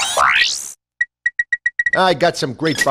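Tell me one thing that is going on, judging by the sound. Menu beeps chirp quickly.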